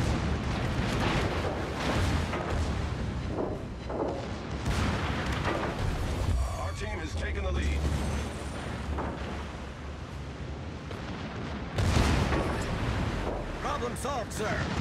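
Shells explode and splash into water.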